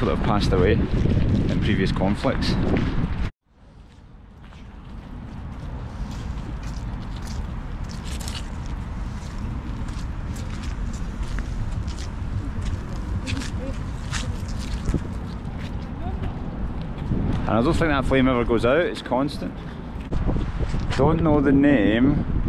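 A young man talks calmly close to the microphone.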